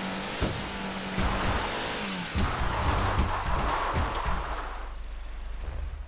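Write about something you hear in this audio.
Water rushes and splashes against a boat's hull, then fades.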